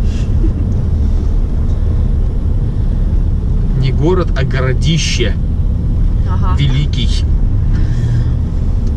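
Tyres rumble on pavement.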